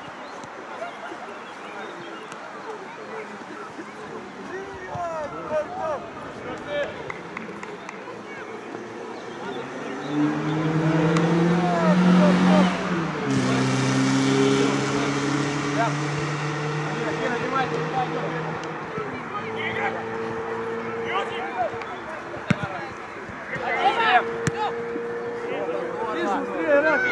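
Players shout to each other across an open outdoor pitch.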